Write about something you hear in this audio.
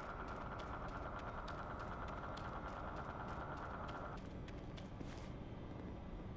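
Boots thud in quick running footsteps.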